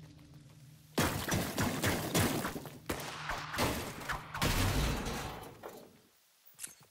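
A pickaxe strikes a wall with loud knocks.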